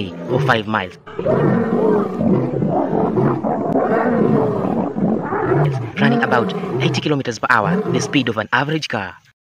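A young man talks close to the microphone with animation.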